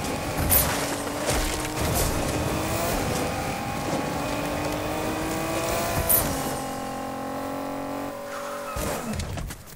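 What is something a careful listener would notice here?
A car engine hums steadily as a sports car speeds along.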